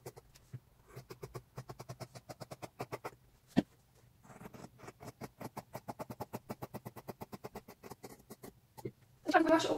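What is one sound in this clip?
Scissors snip rapidly through fabric.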